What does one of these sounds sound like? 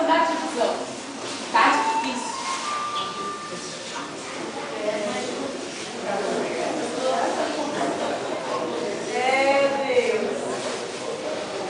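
A woman speaks with expression.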